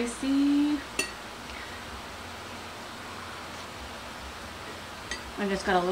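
A spoon scrapes against a bowl.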